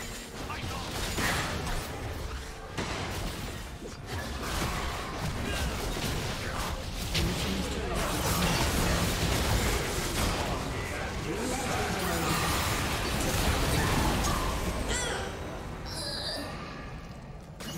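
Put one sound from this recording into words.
Spell blasts and hits crackle and boom in a video game battle.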